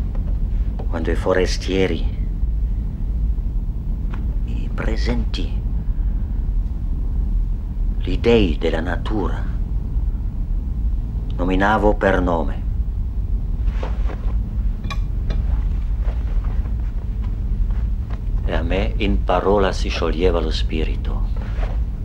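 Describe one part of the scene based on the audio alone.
A man speaks in short, halting phrases with long pauses between them.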